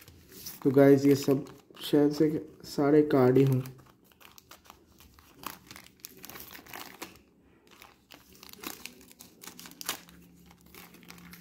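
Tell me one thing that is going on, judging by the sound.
A foil wrapper crinkles and rustles in the hands.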